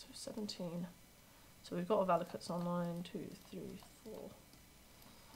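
A young woman speaks calmly, close to a microphone.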